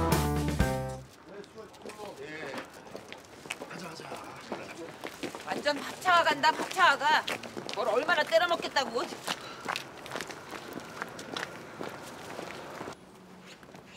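People chatter as they walk past outdoors.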